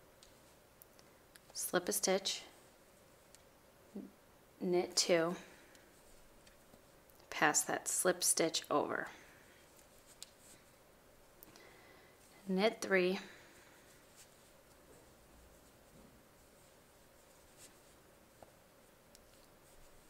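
Wooden knitting needles tap and rub softly against yarn.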